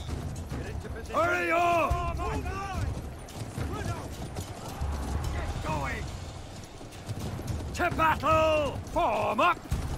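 Horse hooves gallop on packed dirt.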